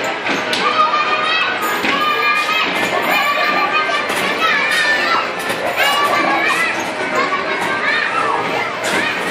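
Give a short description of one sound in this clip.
Children chatter and call out in an echoing indoor space.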